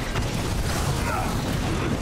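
Laser beams whine and sizzle.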